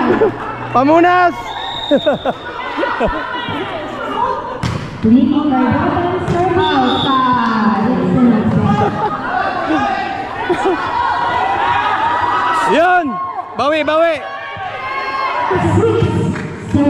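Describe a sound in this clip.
A basketball bounces on the hard floor.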